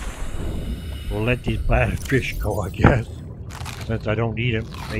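A middle-aged man talks into a microphone with animation.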